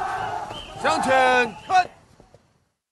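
A man shouts a sharp command outdoors.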